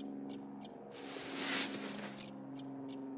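Paper rustles as a letter is handled and put down.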